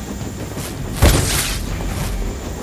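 A fiery blast bursts with a heavy whoosh.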